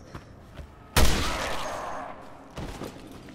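A pistol shot bangs loudly and echoes.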